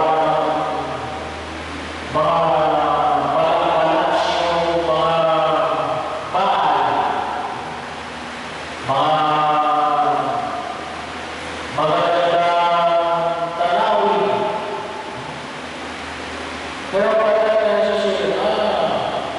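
A middle-aged man chants in long, held phrases into a microphone, heard through loudspeakers in an echoing hall.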